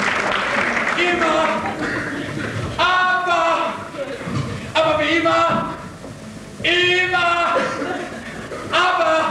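A young woman sings loudly in long, held notes.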